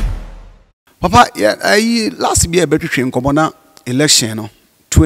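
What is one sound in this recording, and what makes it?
A man speaks with animation into a microphone, heard through a loudspeaker.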